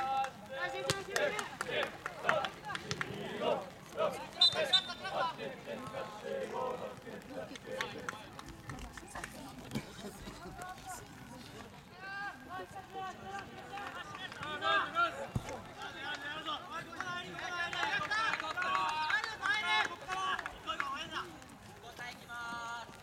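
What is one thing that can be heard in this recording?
Young men shout and call out to each other across an open field outdoors.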